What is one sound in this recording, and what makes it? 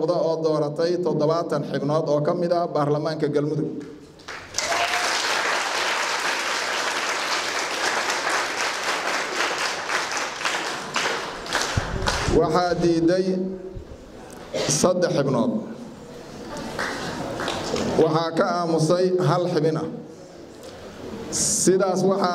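A man sings close into a microphone.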